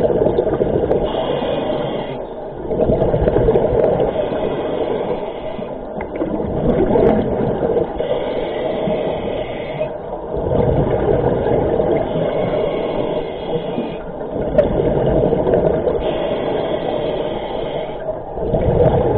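A scuba diver breathes in slowly through a regulator, with a hissing rasp.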